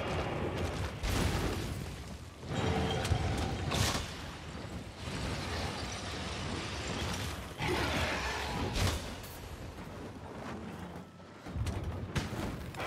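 A sword slashes and strikes with sharp whooshing hits.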